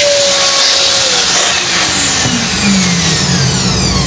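A small vacuum cleaner motor winds down after being switched off.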